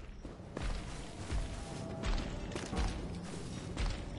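A heavy weapon slashes and strikes with a thud.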